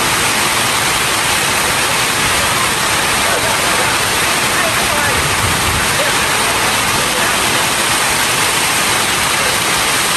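Rain drums on a metal roof overhead.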